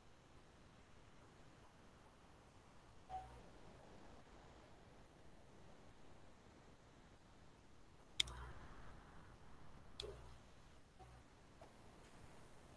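A young woman speaks quietly through an online call.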